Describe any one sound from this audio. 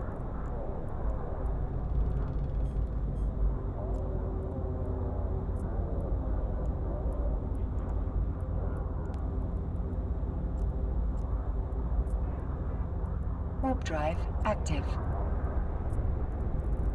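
A deep spaceship engine rumbles steadily.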